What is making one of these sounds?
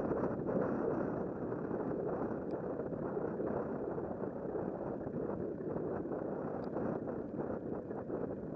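Wind rushes steadily past a moving bicycle.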